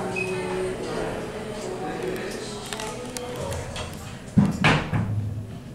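An elevator door slides shut with a thud.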